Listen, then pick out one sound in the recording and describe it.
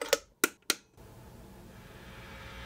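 An amplifier hums and hisses softly.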